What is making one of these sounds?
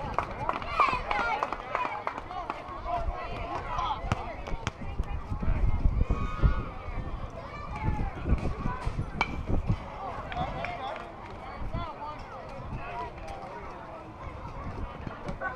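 Young players shout and chatter outdoors across an open field.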